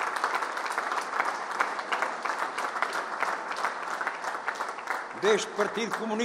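A crowd applauds with steady clapping.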